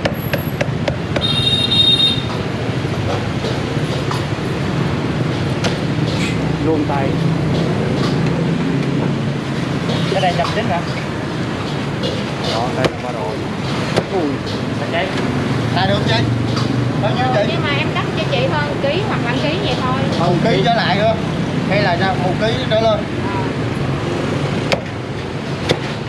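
A cleaver chops through meat onto a wooden board with sharp knocks.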